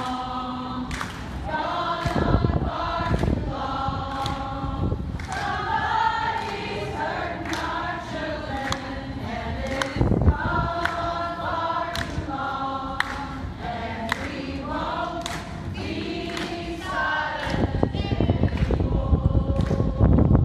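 A group of young men and women sing together nearby, outdoors.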